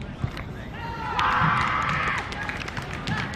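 A group of young men cheers loudly.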